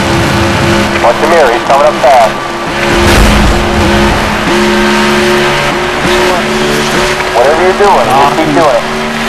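Car tyres squeal as the car slides through a turn.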